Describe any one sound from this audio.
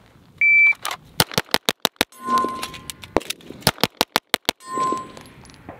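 A pistol fires a rapid string of loud shots outdoors.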